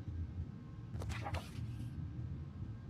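Paper rustles briefly.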